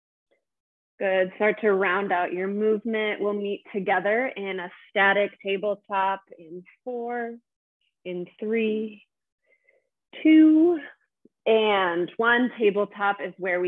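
A woman speaks calmly into a close microphone.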